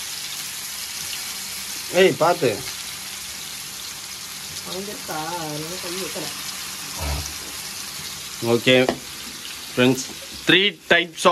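Oil sizzles steadily in a hot pan.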